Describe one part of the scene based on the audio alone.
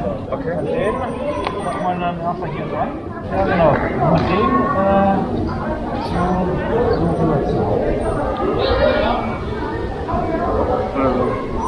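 A young man talks nearby outdoors.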